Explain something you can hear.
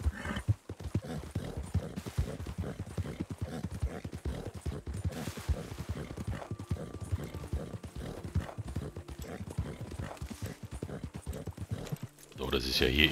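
A horse gallops, its hooves pounding steadily on dry ground.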